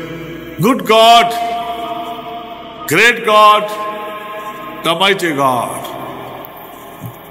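An elderly man speaks in a drawn-out, sing-song voice into a close microphone.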